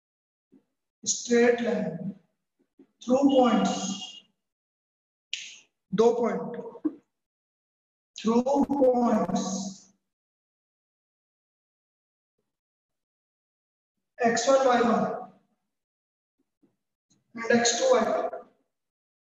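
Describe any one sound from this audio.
A man speaks calmly, close to a microphone, in short phrases.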